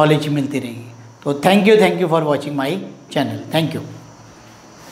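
A man speaks calmly and clearly into a nearby microphone.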